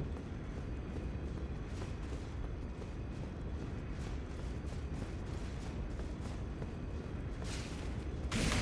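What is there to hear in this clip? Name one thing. Footsteps tap on stone steps.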